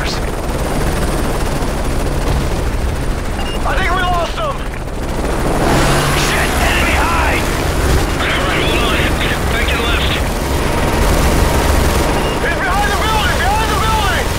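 A helicopter's rotor and engine drone steadily throughout.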